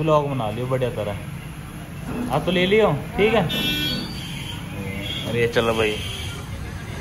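A teenage boy talks and laughs nearby.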